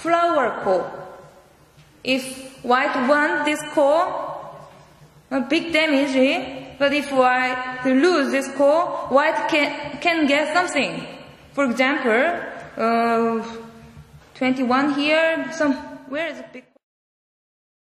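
A young woman speaks calmly into a microphone, heard through loudspeakers.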